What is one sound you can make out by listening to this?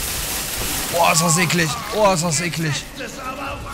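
A man shouts angrily up close.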